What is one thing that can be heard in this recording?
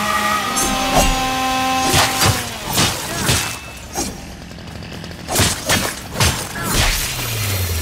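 Blades slash and strike in quick, sharp impacts.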